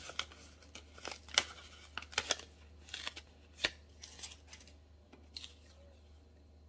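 Paper rustles and crinkles close by as it is handled.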